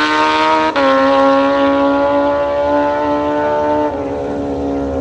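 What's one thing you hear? Motorcycle engines race loudly down a track.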